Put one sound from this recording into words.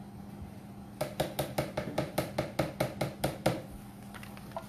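A small container is tapped rapidly over a jar.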